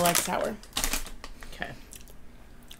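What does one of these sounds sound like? A woman crunches on a snack close by.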